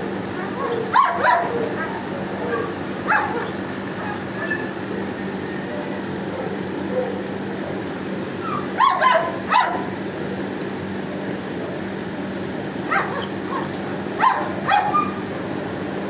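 A dog's claws click on a hard floor.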